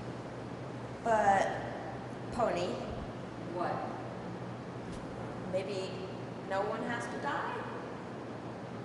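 A young woman speaks in short, halting phrases.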